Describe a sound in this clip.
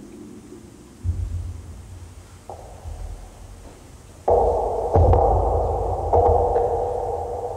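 A deep electronic bass pulse throbs.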